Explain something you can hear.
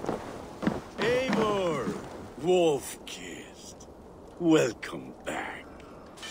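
A man calls out a warm greeting.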